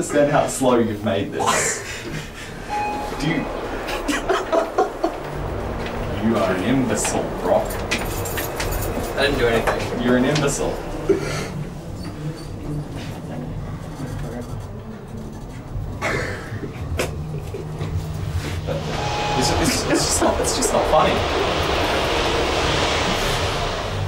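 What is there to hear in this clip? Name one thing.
Young men laugh close by.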